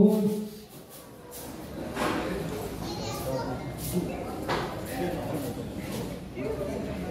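Several people talk quietly in the background.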